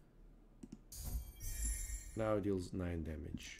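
A bright magical shimmer rings out with a low rumble.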